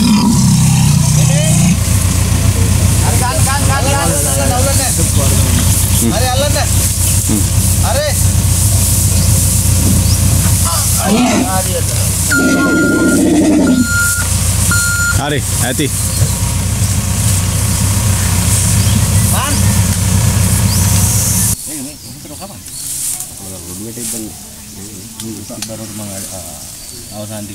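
Men call out and talk to each other outdoors.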